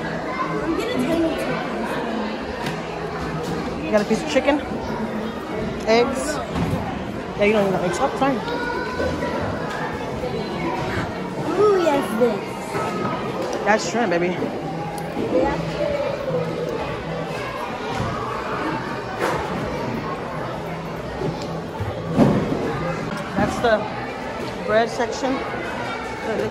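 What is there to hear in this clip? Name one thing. Women and children talk nearby.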